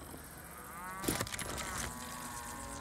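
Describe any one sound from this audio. A gun clicks and rattles as it is picked up.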